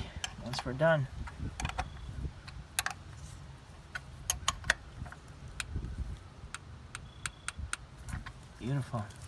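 A ratchet wrench clicks as bolts are loosened on metal.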